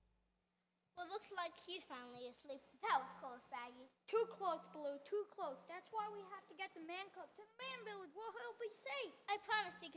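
A girl speaks with animation through a microphone in a large echoing hall.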